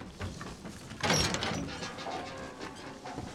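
A metal gate creaks and clanks open.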